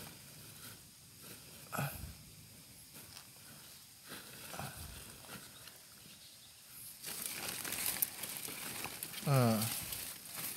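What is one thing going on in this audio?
Mushrooms snap softly as a hand picks them.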